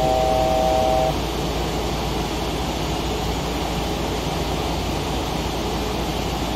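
Jet engines hum steadily.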